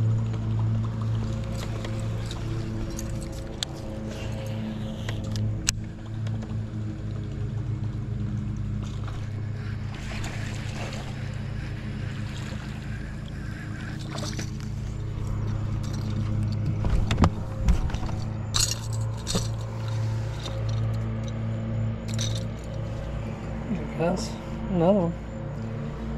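A boat motor hums steadily throughout.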